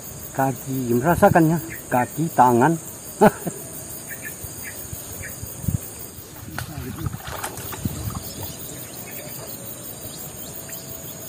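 Water sloshes and splashes as a man wades.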